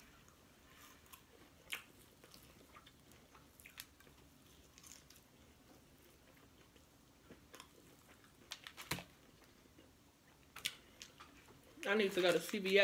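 A woman chews and smacks on fried chicken close to a microphone.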